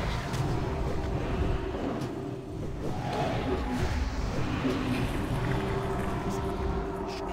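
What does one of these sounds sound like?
Game spell effects whoosh and clash during a battle.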